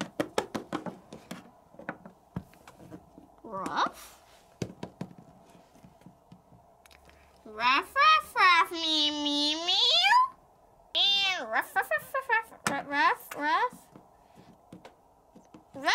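Small plastic toy figures tap and knock on a wooden floor.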